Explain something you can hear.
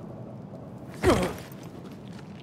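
A person lands heavily with a thud.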